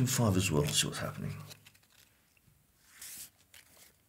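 A playing card is laid down on a table with a soft tap.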